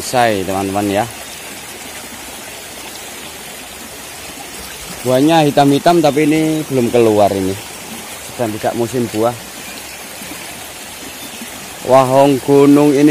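A shallow stream flows and gurgles over rocks.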